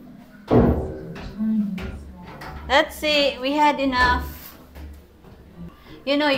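Footsteps climb stairs.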